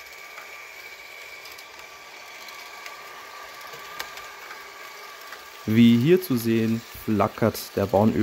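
A model train rumbles and whirs steadily along its track.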